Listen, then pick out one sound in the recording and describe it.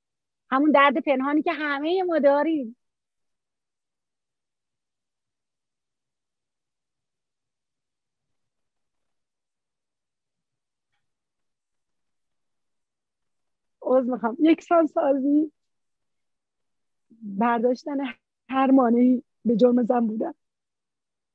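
A middle-aged woman talks calmly through an online call.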